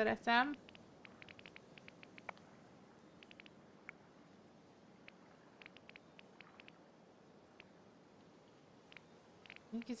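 Soft menu clicks tick quietly, one after another.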